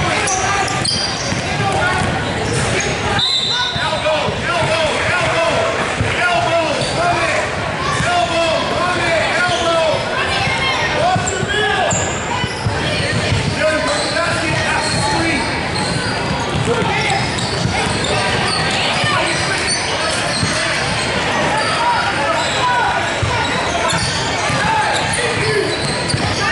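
Young players and spectators shout and chatter, echoing in a large hall.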